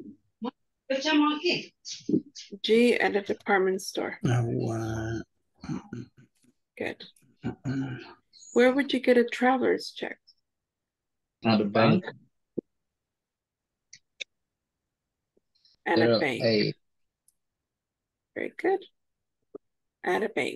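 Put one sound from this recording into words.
A woman speaks calmly through an online call, pausing often.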